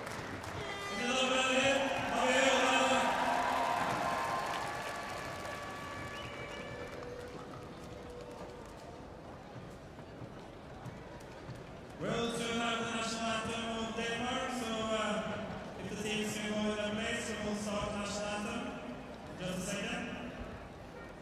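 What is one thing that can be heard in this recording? Several men laugh and talk cheerfully close by.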